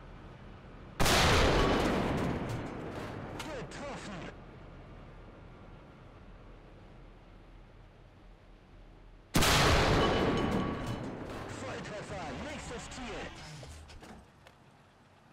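A tank cannon fires with a loud boom that rumbles away.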